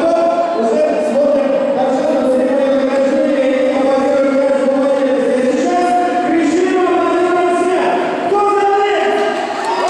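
A large crowd chants and sings loudly in an echoing arena.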